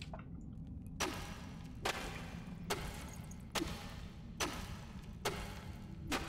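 A pickaxe strikes rock again and again at a steady beat.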